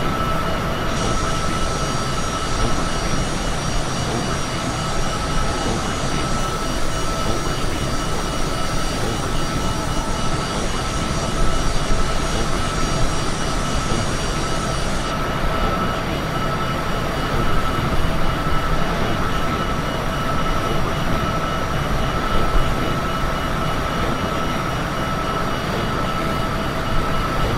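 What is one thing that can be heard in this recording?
Jet engines roar in a steady, whining drone.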